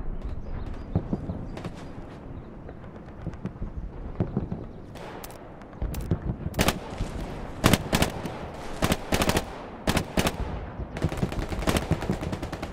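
Gunshots crack repeatedly some distance away.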